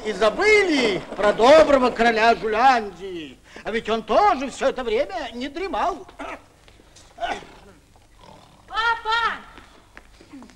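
A man sings theatrically with animation, close by.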